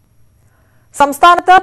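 A young woman reads out calmly through a microphone.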